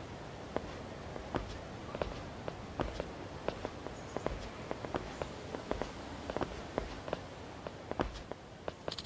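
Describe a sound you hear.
Hard-soled footsteps walk steadily on pavement.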